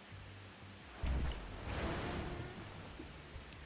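A short whooshing game sound effect plays as one card attacks another.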